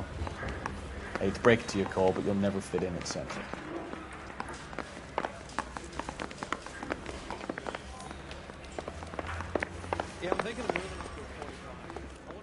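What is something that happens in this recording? Footsteps thud down wooden stairs and along a wooden floor.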